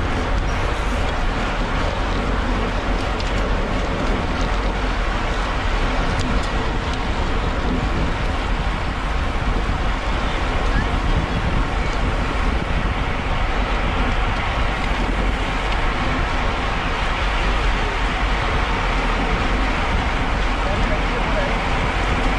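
Bicycle tyres hum steadily on a rough road.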